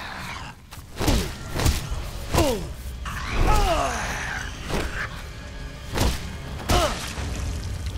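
Heavy blows thud into flesh.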